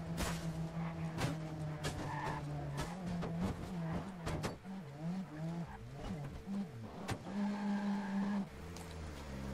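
A car engine roars and revs up and down as the car speeds along.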